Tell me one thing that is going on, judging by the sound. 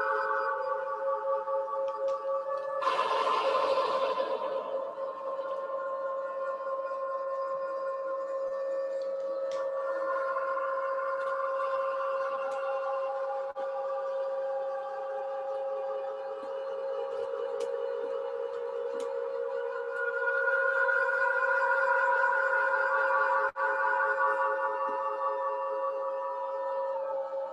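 Electronic synthesizer tones drone and pulse steadily.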